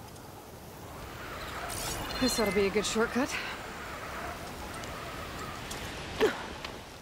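A pulley whirs along a taut cable.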